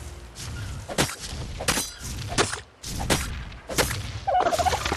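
A pick strikes a carcass again and again with sharp, wet thuds.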